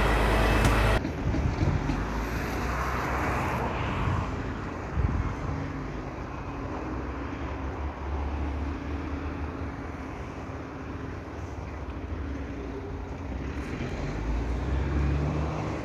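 Traffic passes by on a road outdoors.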